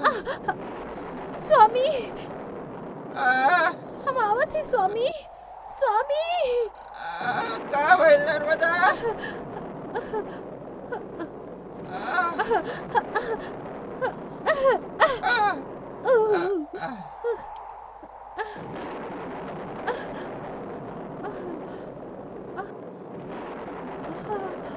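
Wind howls steadily.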